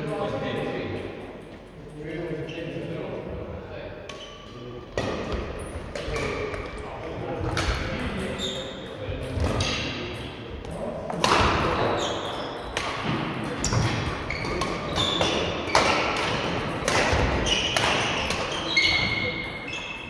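Shuttlecocks are struck with sharp pops of rackets in a large echoing hall.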